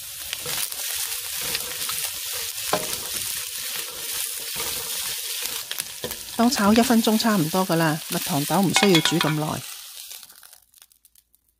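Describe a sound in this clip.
Food sizzles and crackles in a hot wok.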